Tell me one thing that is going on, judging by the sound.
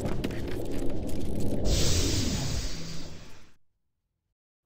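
A heavy metal door rumbles and grinds open.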